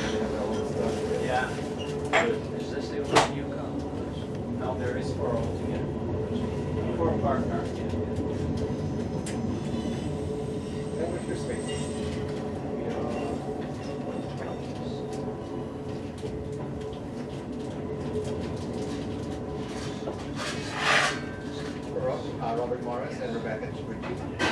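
Train wheels squeal on the rails now and then.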